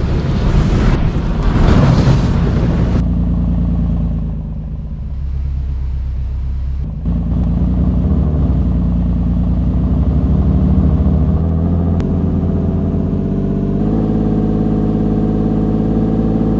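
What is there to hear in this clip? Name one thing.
A vehicle engine hums steadily and rises in pitch as it speeds up.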